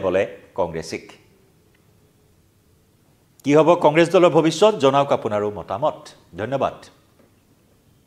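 A man speaks clearly and calmly into a microphone, in short bursts.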